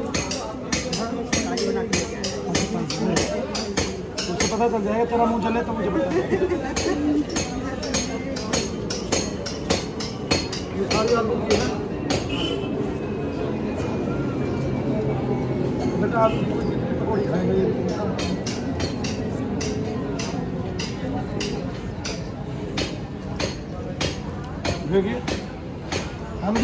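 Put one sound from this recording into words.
Several women and men chatter close by.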